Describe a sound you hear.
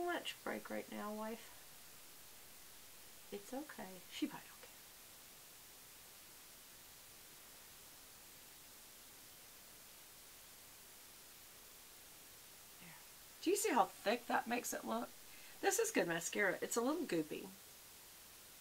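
A middle-aged woman speaks calmly and close to a microphone, in short bursts with pauses.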